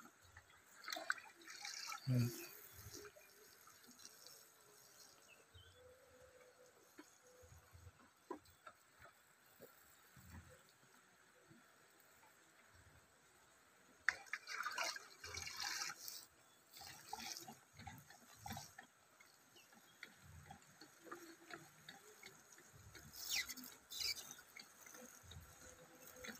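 Water splashes from a can onto soil.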